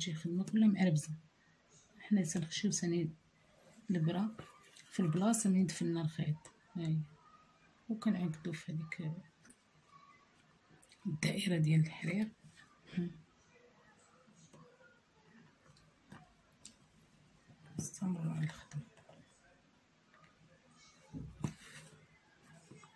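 A needle and thread pull softly through fabric.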